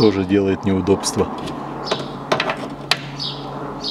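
A screwdriver clicks and scrapes against metal.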